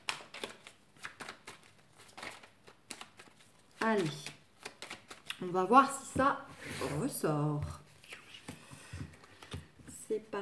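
Playing cards tap and rustle against a cloth-covered table.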